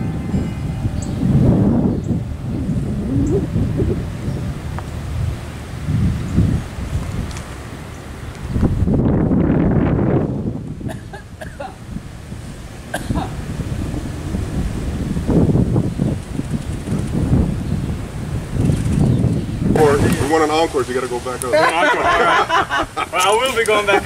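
Wind gusts and rumbles against the microphone outdoors.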